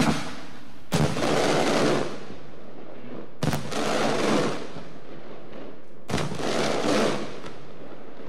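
Fireworks crackle and fizzle after each burst.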